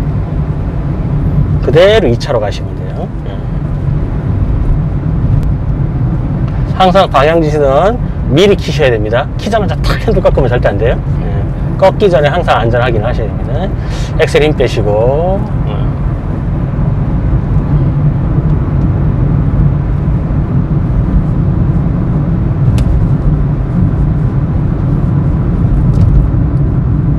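A car engine hums with steady road rumble from inside the cabin.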